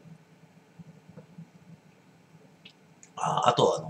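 A glass is lifted from a table with a soft scrape.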